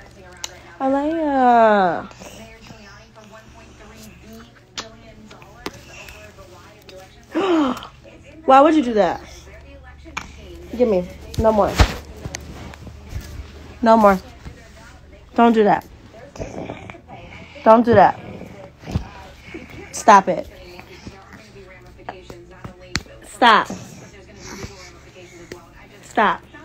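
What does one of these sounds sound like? A young child squeals and cries out loudly, close by, again and again.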